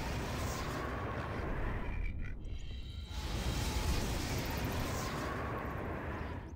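Flames roar and crackle steadily.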